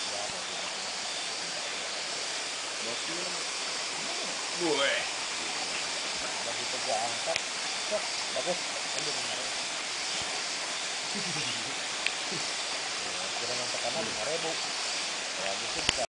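Shallow water ripples gently over stones.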